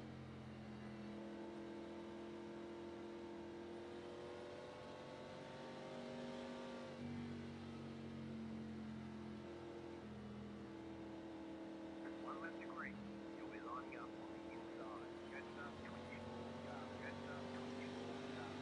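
Race car engines drone steadily at a constant pitch.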